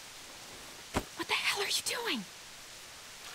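A young woman speaks with a sharp, upset tone.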